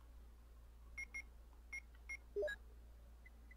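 Short electronic beeps sound in quick succession.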